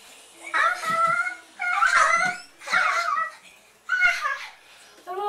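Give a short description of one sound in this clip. Young children sing out loudly in short bursts, close by.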